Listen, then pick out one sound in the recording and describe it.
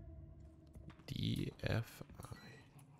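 A young man talks briefly close to a microphone.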